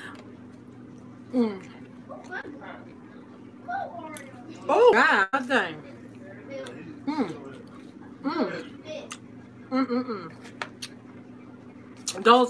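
A middle-aged woman chews food with soft, wet mouth sounds.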